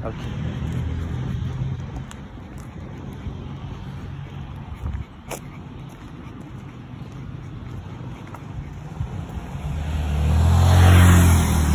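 Footsteps scuff on a concrete path.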